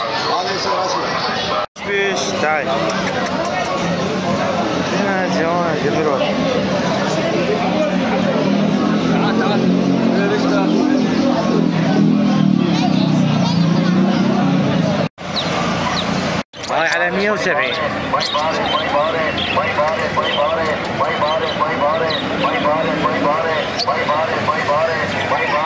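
A busy crowd chatters nearby outdoors.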